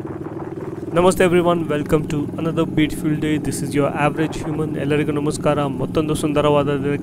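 A man talks through a helmet microphone.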